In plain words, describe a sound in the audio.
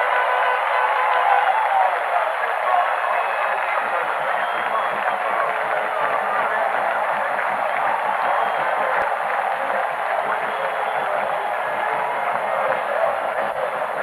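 A large crowd cheers and roars steadily in a stadium.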